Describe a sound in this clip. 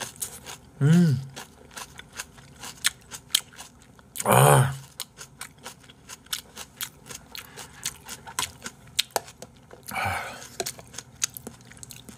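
A young man chews crunchy food close to a microphone.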